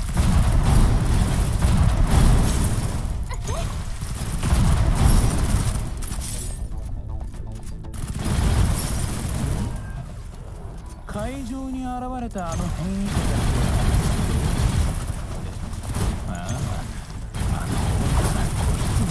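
Gunfire and energy blasts crack and boom.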